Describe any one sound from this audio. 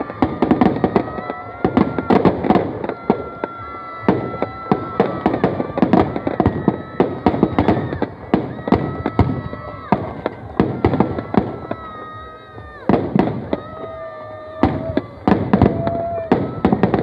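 Firecrackers bang and crackle loudly in rapid bursts.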